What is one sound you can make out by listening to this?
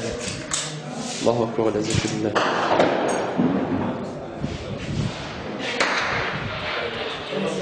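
Men talk to each other in an echoing room.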